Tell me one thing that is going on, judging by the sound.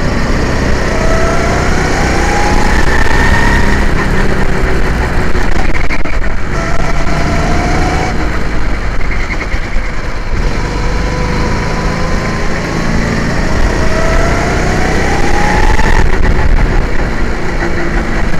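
A go-kart engine drones loudly and rises and falls in pitch as it speeds up and slows down.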